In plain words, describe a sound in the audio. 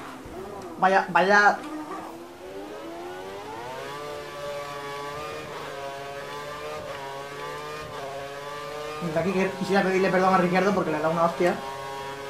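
A racing car engine whines, rising in pitch as it speeds up and dropping with each gear change.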